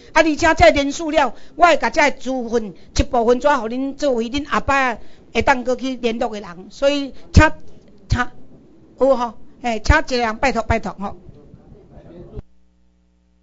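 A crowd of men and women sings together in a large room.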